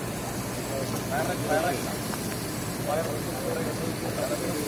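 Men talk to each other nearby outdoors.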